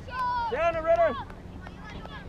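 A high-voiced young spectator shouts loudly close by, outdoors.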